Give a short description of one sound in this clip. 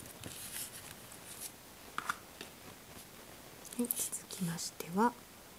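Fingers rustle and click small plastic pieces close by.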